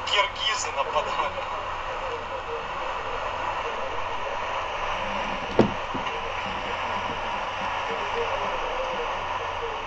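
Road noise hums steadily from a car driving fast.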